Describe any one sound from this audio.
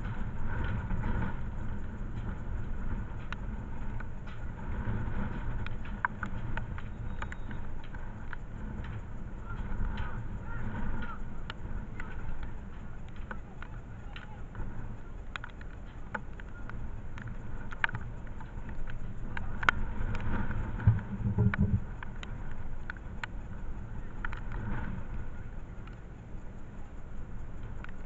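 Strong wind buffets the microphone outdoors.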